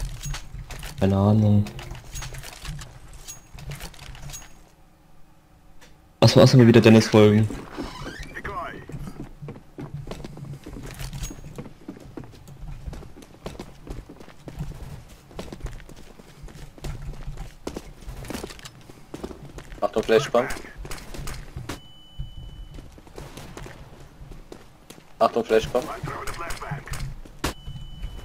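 Footsteps thud steadily on wooden floorboards and dirt.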